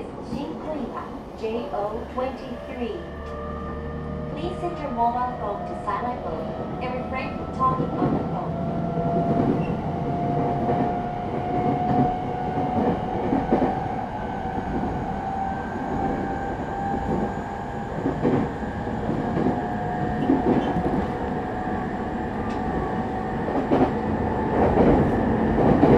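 An electric train hums steadily while standing at a platform.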